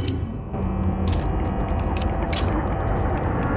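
A shotgun is reloaded with a metallic clack.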